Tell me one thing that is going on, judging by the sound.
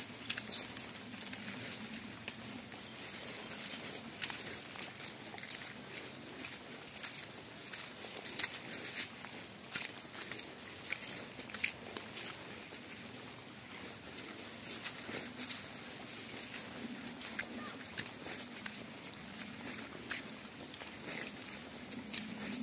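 Footsteps squelch and slap through wet mud.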